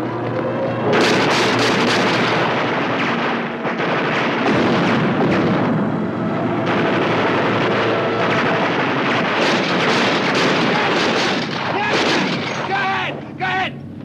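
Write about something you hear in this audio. Explosions blast nearby.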